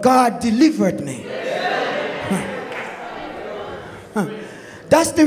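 A congregation calls out and cheers in a hall.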